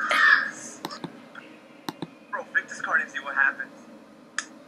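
A young boy giggles close to a microphone.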